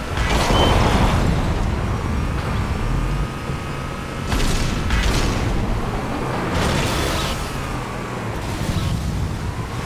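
A vehicle engine rumbles steadily while driving over rough ground.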